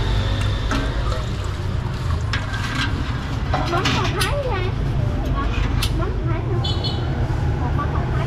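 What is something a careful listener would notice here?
A ladle clinks against a metal pot.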